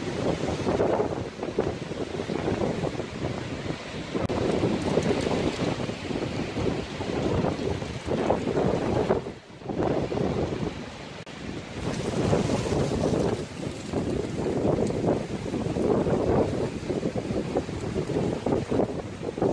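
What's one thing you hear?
Hail patters and clatters densely on the ground outdoors.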